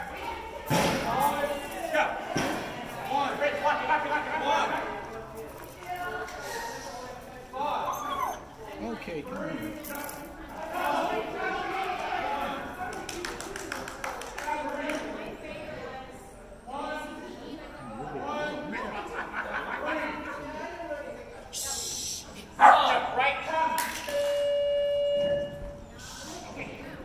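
A woman calls out to a dog with animation in a large echoing hall.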